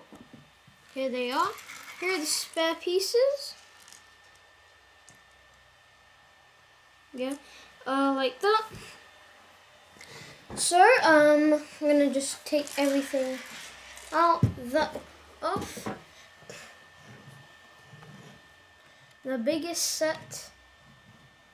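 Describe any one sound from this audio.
A young child talks with animation close by.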